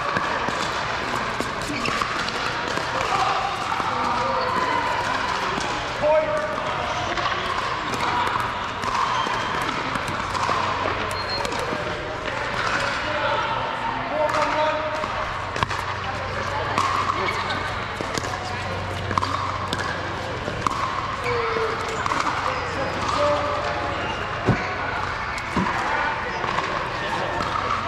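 Paddles smack a plastic ball in quick rallies, echoing in a large hall.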